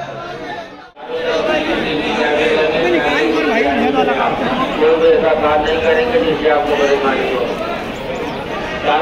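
A large outdoor crowd chatters and calls out loudly all around.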